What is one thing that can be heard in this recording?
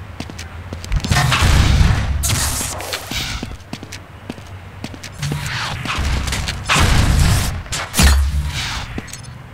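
A weapon fires with loud, booming blasts.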